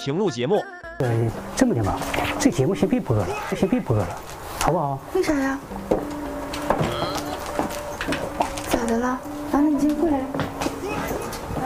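A middle-aged man talks calmly.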